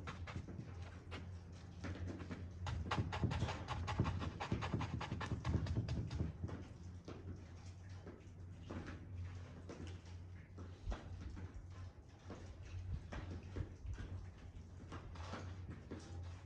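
A paintbrush dabs and scrapes against a canvas.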